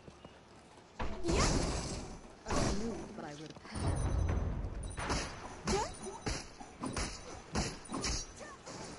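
Swords clash and impacts thud in a fight.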